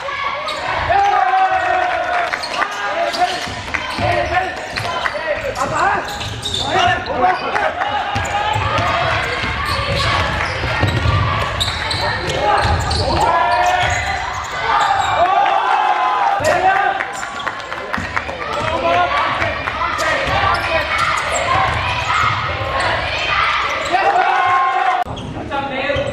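Young men shout to each other across a large echoing gym.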